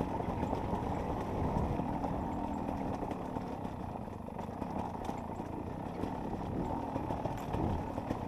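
Tyres rumble and bump over a rough dirt trail.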